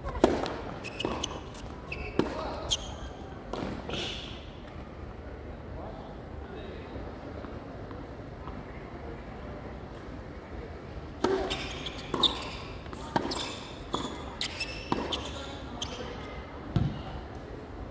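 Tennis balls are struck sharply back and forth by rackets.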